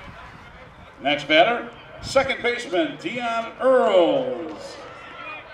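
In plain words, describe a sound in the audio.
Young men shout and cheer excitedly outdoors.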